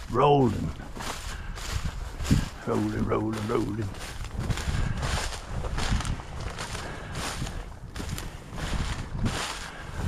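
Footsteps rustle through dry, tall grass at a steady walking pace.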